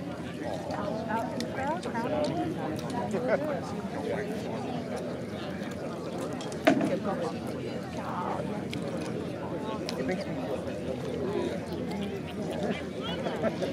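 Men and women in a crowd talk and murmur outdoors.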